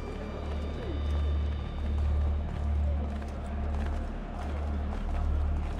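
Footsteps shuffle on a stone floor in a large echoing hall.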